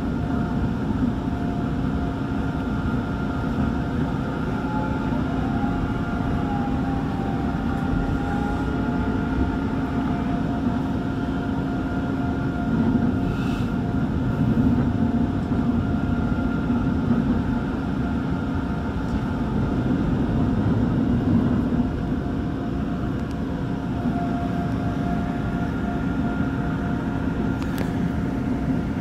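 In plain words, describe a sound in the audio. An electric commuter train rumbles along the track at speed, heard from inside the carriage.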